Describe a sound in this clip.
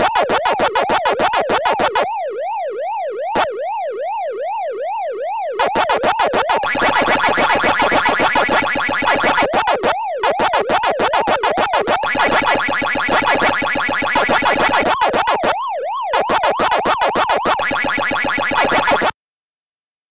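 An electronic siren wails up and down steadily.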